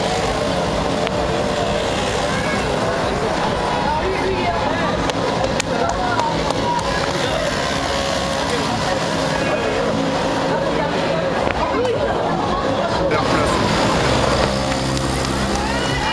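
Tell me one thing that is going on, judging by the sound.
A small moped engine putters past.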